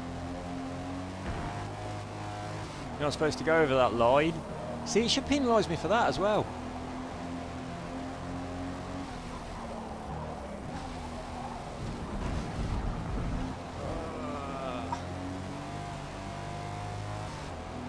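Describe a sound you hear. A sports car engine hums steadily and revs up and down as the car races.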